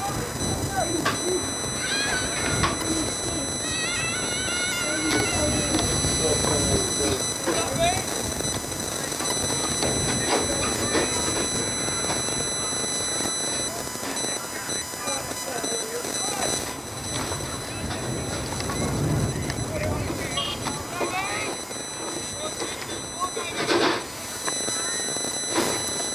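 Young women shout and call to one another across an open field in the distance.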